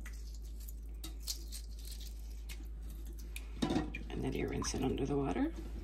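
Shell crackles softly as it is peeled off a boiled egg.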